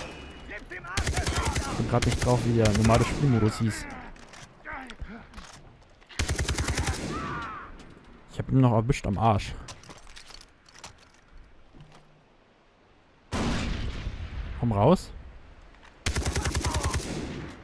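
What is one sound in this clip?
A rifle fires rapid bursts of automatic shots.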